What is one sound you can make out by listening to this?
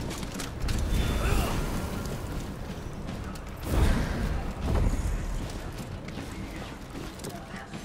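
A fire crackles in a brazier.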